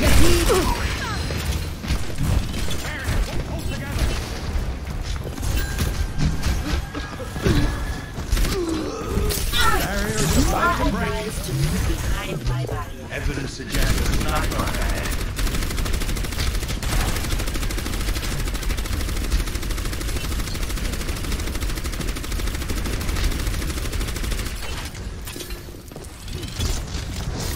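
A game's rapid energy gunfire blasts over and over.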